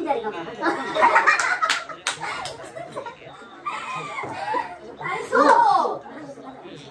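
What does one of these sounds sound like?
Several women laugh close by.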